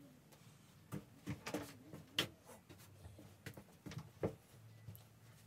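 Knocks and bumps sound as objects are handled nearby.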